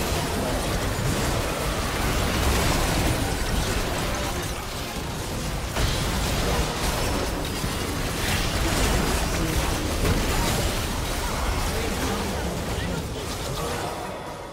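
Magic spells crackle and boom in a busy video game battle.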